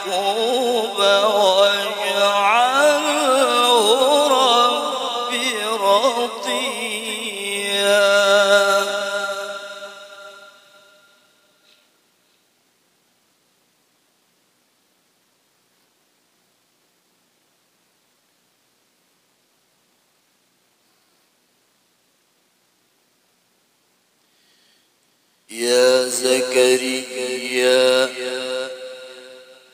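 A man chants a recitation in a long, melodic, wavering voice through a microphone.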